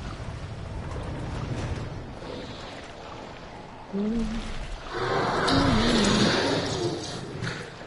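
Water sloshes and splashes as someone wades through it.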